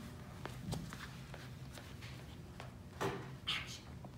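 Shoes tap and scuff on a hard floor.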